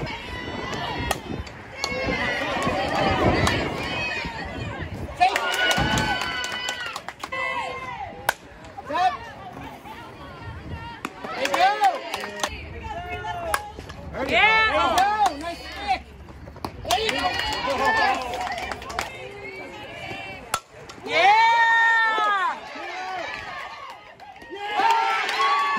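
Young women shout and cheer from across an open field.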